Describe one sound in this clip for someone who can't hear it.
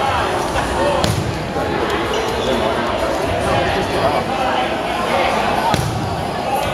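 A rubber ball thuds on a wooden floor.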